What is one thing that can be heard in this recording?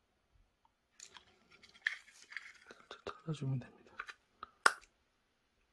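Plastic clicks and scrapes as a tool pries at a battery casing.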